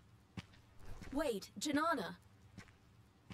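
A second woman calls out sharply.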